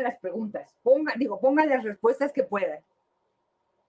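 A woman speaks calmly through a microphone in an online call.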